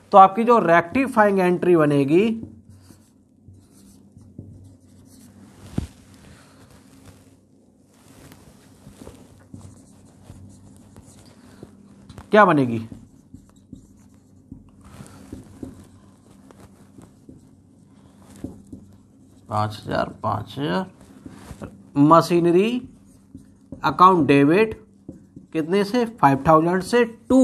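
A man speaks calmly and clearly into a nearby microphone, pausing between phrases.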